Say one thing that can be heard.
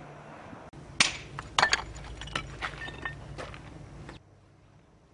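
A trowel taps and scrapes on bricks.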